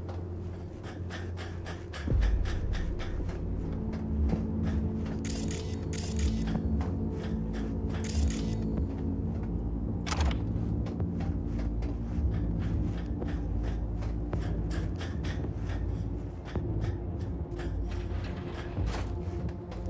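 Footsteps clank on metal grating at a steady walking pace.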